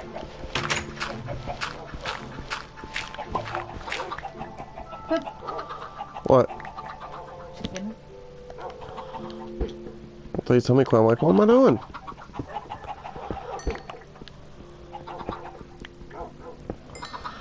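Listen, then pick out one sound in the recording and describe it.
A chicken clucks nearby.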